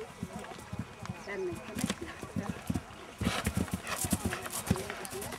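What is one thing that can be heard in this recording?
Horse hooves thud on grass in a steady rhythm.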